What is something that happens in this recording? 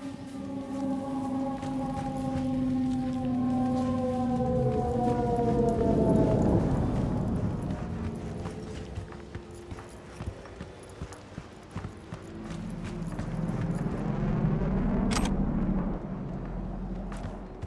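Footsteps patter quickly across hard pavement.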